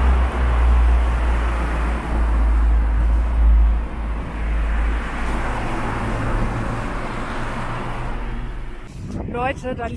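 Bicycle tyres roll fast over asphalt with a loud rumble.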